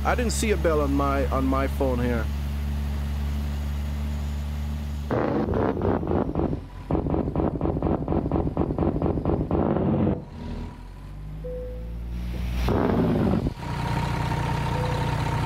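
A truck engine idles with a low steady hum.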